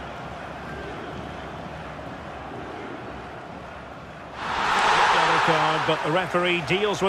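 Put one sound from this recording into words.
A large stadium crowd murmurs and then bursts into a loud roar.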